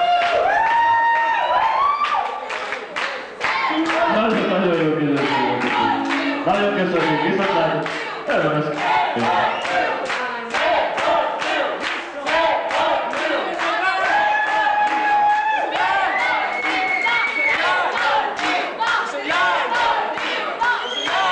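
A band plays electric guitars loudly in an echoing hall.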